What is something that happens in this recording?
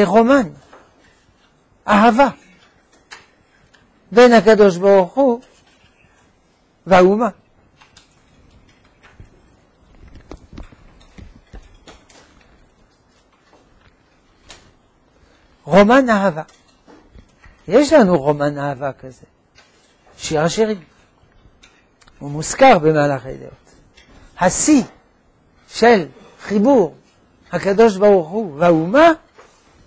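An elderly man speaks calmly and with emphasis into a clip-on microphone, with pauses between phrases.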